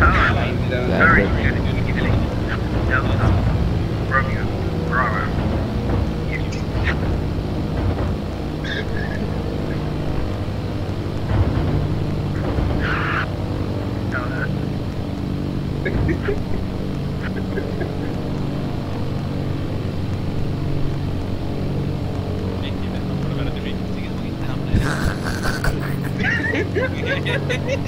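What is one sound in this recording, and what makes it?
A young man talks calmly into a headset microphone now and then.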